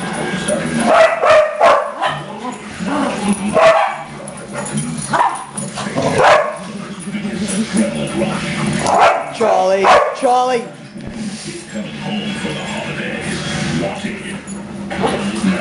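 Small dogs bark and yip playfully nearby.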